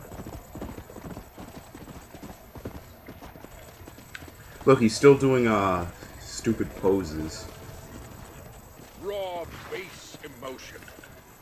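A horse gallops with quick, steady hoofbeats on dry ground.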